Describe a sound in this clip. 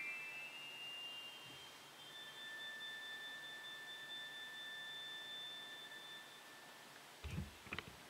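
An organ holds soft, high steady notes.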